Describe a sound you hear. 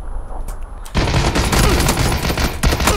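Gunshots fire rapidly at close range.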